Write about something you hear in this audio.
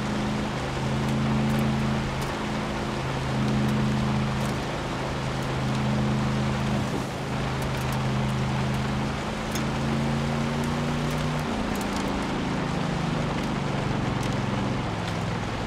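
A truck engine drones steadily, rising and falling as it shifts gears.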